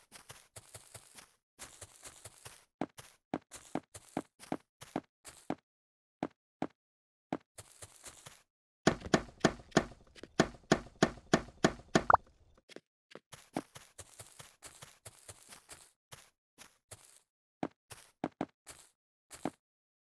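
Blocks are placed with quick soft clicks, over and over.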